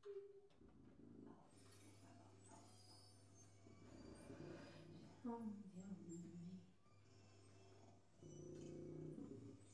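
A sousaphone plays low notes.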